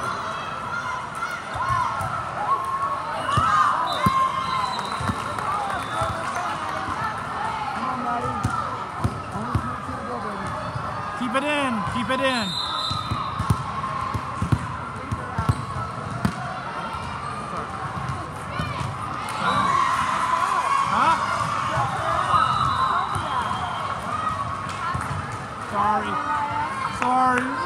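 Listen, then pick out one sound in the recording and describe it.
A crowd of spectators chatters and cheers in a large echoing hall.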